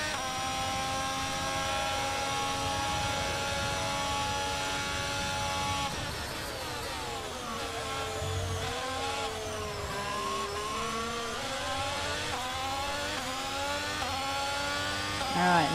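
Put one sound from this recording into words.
A racing car engine screams at high speed, dropping in pitch as it slows for a corner and rising again as it accelerates.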